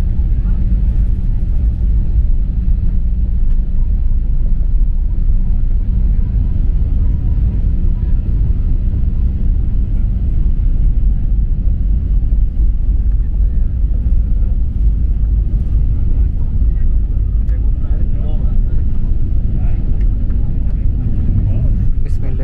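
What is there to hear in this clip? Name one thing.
A jet engine roars steadily as an airliner speeds down a runway.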